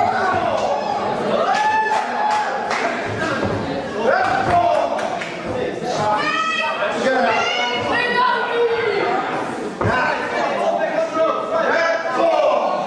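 Bodies thud heavily onto a wrestling ring's mat.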